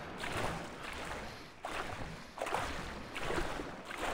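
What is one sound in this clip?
Water splashes softly as someone swims.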